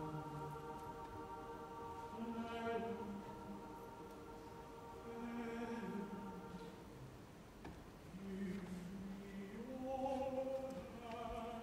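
A man sings in a full, operatic voice, holding long notes.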